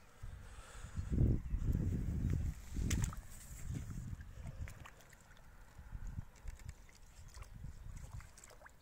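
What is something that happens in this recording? Water splashes and sloshes as a net is dipped into a river.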